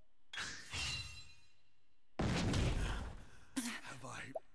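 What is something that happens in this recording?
Sword strikes and battle effects crash loudly.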